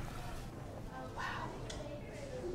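A young person answers quietly nearby.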